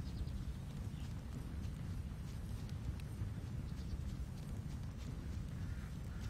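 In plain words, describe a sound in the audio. Hooves thud softly on grass as a mount trots along.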